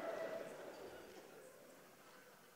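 A woman laughs softly.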